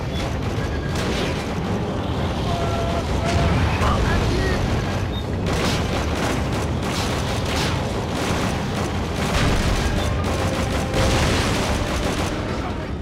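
Explosions rumble in the distance.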